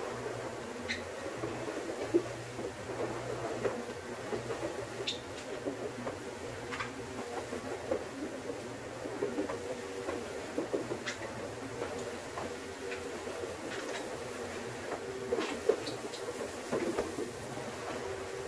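A floor scrubbing machine hums and whirs steadily.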